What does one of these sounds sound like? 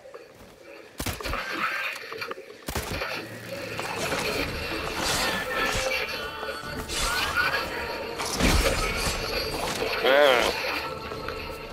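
Swords clash and ring in a close fight.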